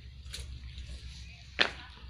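Sandals scuff and tap on a concrete path.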